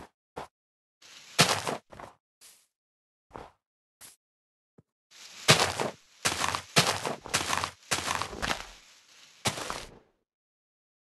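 Leaves rustle and break with repeated crackling bursts.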